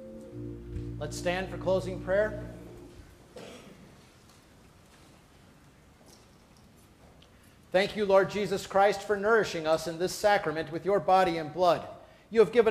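A man speaks in a large, echoing room.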